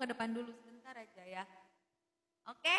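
A young woman sings close into a microphone.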